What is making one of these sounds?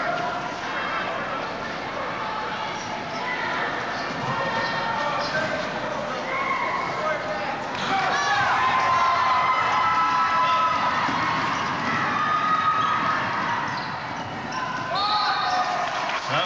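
A small crowd murmurs and calls out in a large echoing gym.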